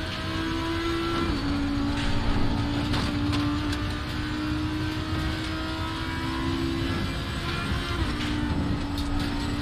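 Tyres rumble over the track.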